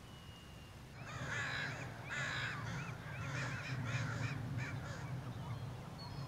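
A flock of shorebirds calls loudly and busily across the water.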